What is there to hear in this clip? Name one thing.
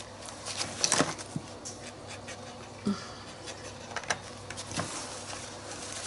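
Paper rustles as a book is shifted about.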